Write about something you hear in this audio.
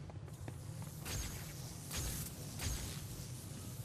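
An electric charge crackles and zaps in short bursts.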